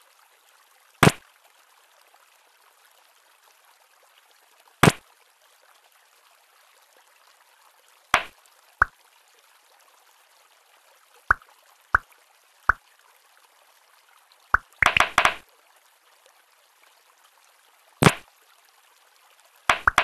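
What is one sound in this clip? A tablet game plays short, sharp pops and chimes now and then.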